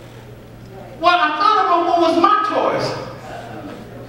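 A man speaks loudly and with emphasis through a microphone in a large echoing hall.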